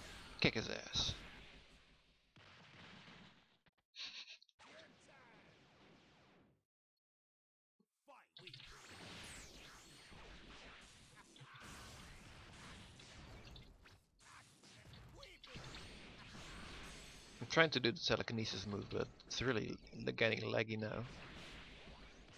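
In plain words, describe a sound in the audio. Punches and kicks land with sharp smacking thuds.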